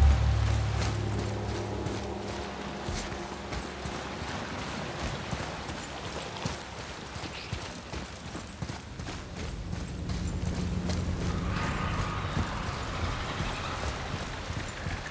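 Heavy footsteps thud steadily on a stone floor.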